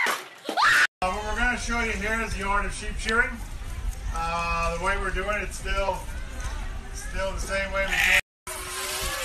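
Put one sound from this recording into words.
A sheep bleats loudly and repeatedly.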